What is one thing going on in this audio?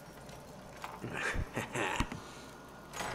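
A heavy metal gate creaks and rattles as it is pushed open.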